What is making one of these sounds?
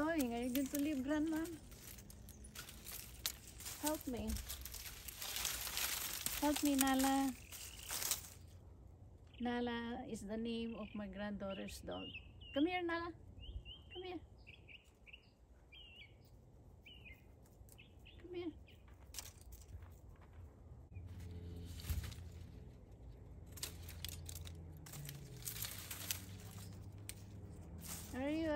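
Leaves rustle as a woman handles a vine.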